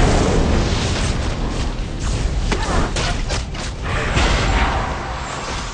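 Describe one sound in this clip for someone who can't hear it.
Game spells and sword strikes crash and clang in a busy fight.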